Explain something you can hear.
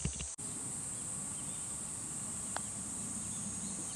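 A putter taps a golf ball on a green.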